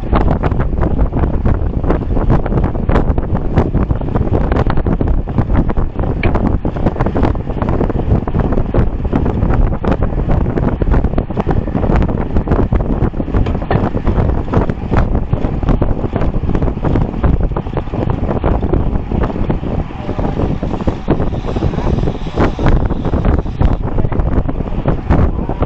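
Wind rushes loudly past the microphone of a moving bicycle.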